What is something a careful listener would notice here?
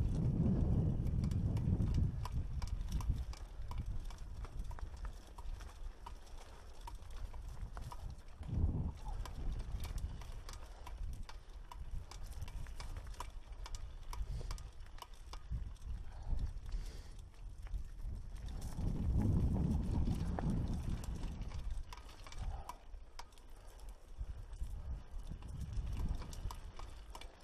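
Mountain bike tyres crunch over a rocky dirt trail.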